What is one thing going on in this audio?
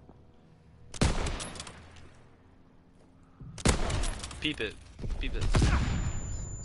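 A rifle fires loud, sharp shots that echo away.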